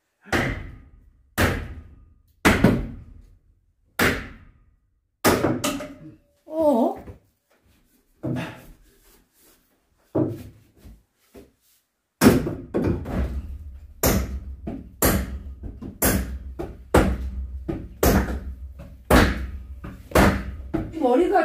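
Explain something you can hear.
A hammer strikes wood with sharp, ringing knocks.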